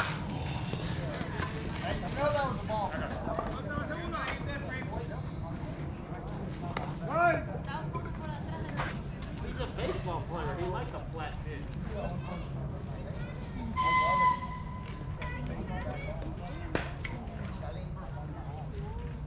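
Adult men call out and chatter to each other across an open field outdoors.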